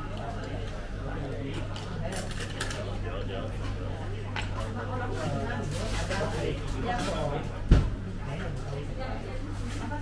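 Many people chatter in a busy room.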